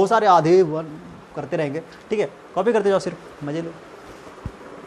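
A young man speaks calmly and clearly close to a microphone.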